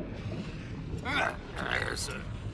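A man speaks in a gruff, animated voice.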